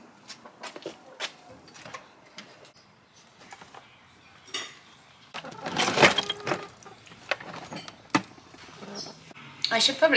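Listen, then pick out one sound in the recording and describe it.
Plastic boxes knock and clatter as they are lifted.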